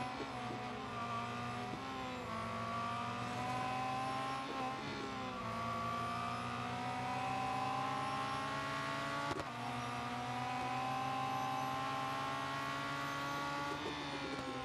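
A racing car engine roars steadily, its pitch rising and dropping with the gear changes.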